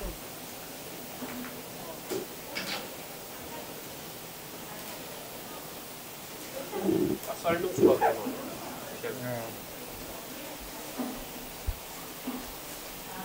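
Gloved hands tear and pull apart cooked meat with soft, wet rustles.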